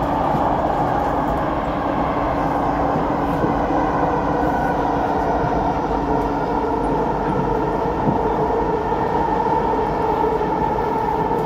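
A subway train rumbles and hums steadily while moving along the tracks.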